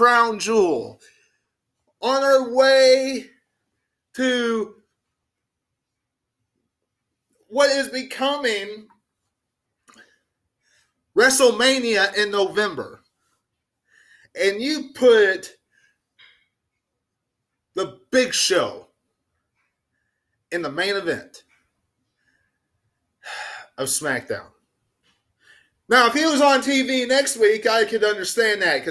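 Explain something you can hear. A young man sings loudly and with animation close to a microphone, in bursts with pauses.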